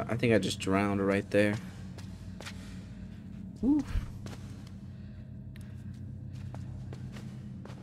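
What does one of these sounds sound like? Light footsteps patter on a hard floor.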